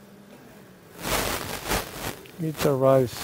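A suction tube slurps fluid with a hissing rush.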